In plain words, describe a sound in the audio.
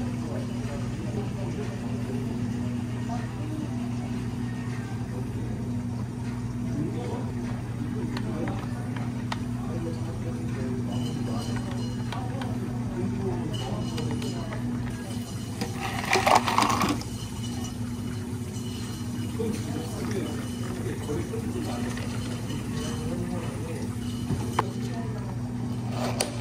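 A coffee machine hums steadily.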